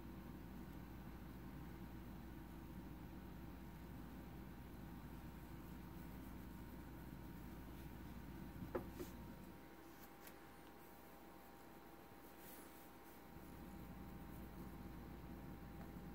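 A brush rustles softly through a cat's fur.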